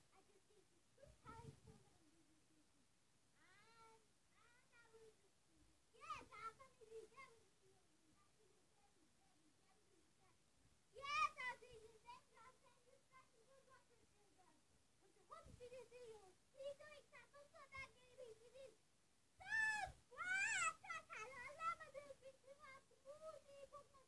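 A child sings and talks playfully, close by.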